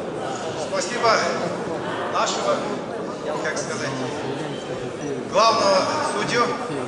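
Several voices shout and cheer from the crowd.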